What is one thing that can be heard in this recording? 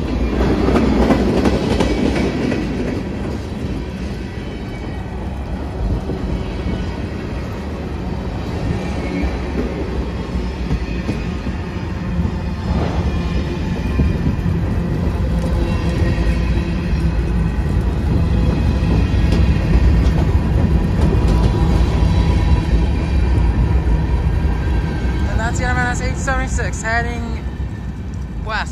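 A long freight train rumbles past close by.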